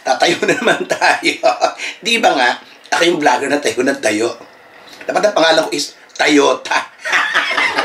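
A man laughs loudly.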